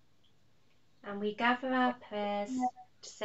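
A woman sings, heard through an online call.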